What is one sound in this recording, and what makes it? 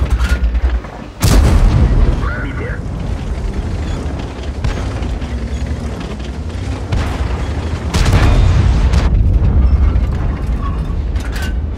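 A heavy tank's engine rumbles low.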